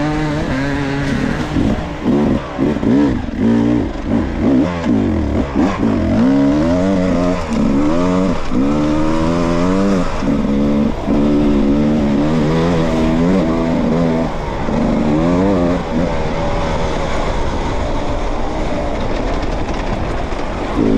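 Tyres crunch over dirt and gravel.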